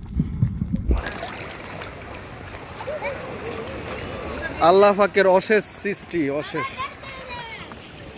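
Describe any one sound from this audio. Water splashes and laps close by in the open air.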